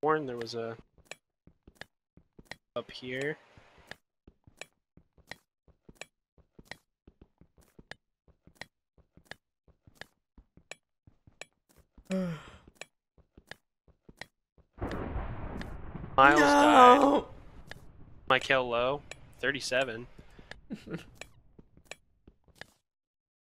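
A pickaxe chips at stone with quick, regular taps.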